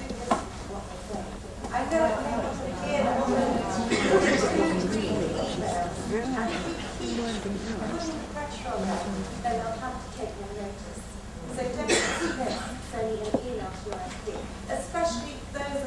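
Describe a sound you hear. A middle-aged man speaks steadily into a microphone in a large room.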